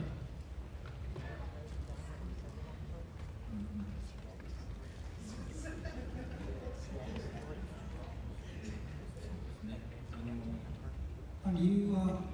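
A man speaks into a microphone, heard over loudspeakers in a large echoing hall.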